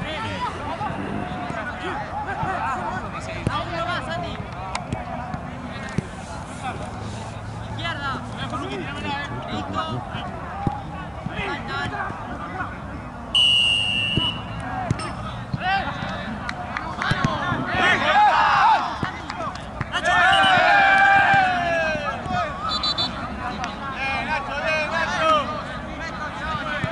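Several young men shout and call out across an open-air pitch.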